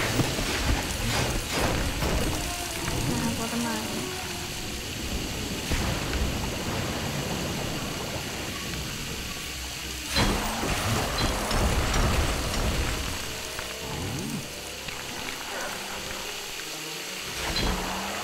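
Objects break apart with clattering crashes.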